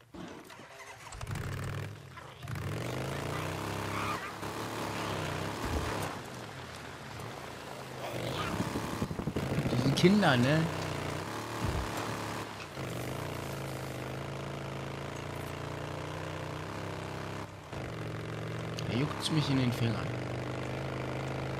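A motorcycle engine starts up and revs as the bike rides off, rising and falling in pitch.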